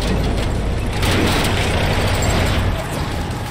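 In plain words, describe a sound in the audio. A tank's tracks clank and grind.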